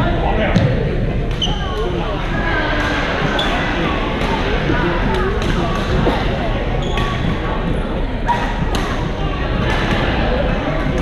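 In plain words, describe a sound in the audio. Many people chatter and call out across a large echoing hall.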